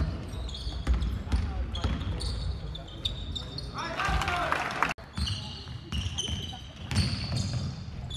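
Sneakers squeak sharply on a hall floor.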